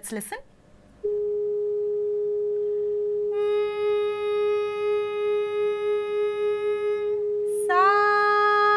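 A woman hums a long, steady note.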